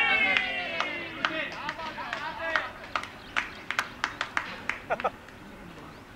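Several men clap their hands.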